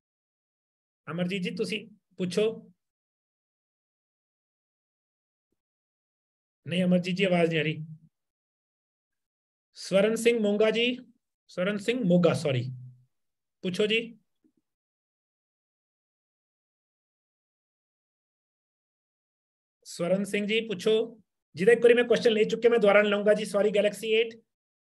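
A man speaks calmly in short bursts over an online call.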